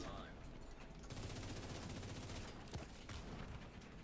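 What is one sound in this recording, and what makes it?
Gunfire rattles from a game.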